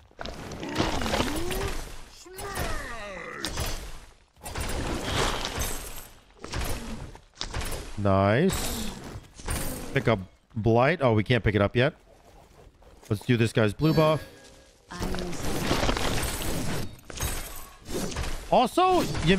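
Game combat sounds crash and whoosh.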